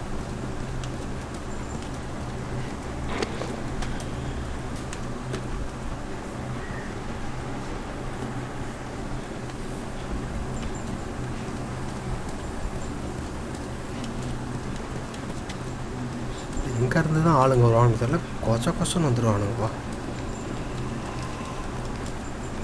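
Footsteps scuff slowly across a hard, gritty floor.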